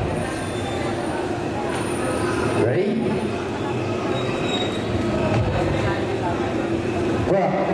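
A large crowd cheers and chatters loudly throughout.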